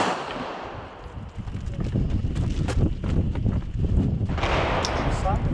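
Footsteps crunch on dirt as people run.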